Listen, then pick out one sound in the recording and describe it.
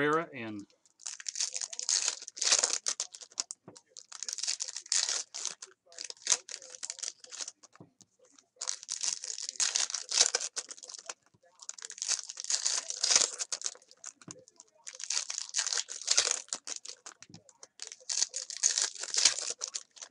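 Hands crinkle and tear open foil wrappers of trading card packs.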